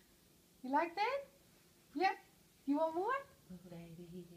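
A woman speaks with a rising, playful voice close by.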